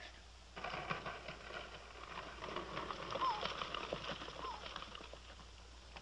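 A wagon rattles over rough ground.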